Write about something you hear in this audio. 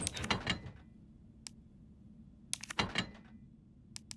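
Menu selection clicks sound in short bursts.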